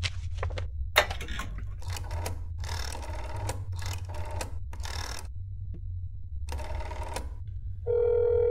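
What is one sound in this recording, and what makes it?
A rotary phone dial turns and clicks.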